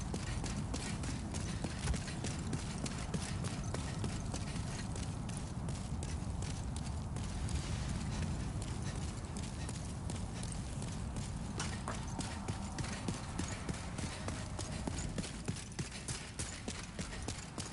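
Armored footsteps clank quickly on stone.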